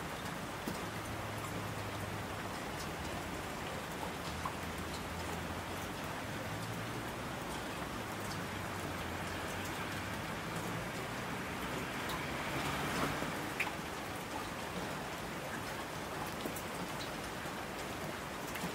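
Mountain streams rush and splash.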